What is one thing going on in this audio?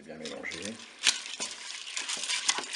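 A wooden spatula stirs and scrapes rice in a pot.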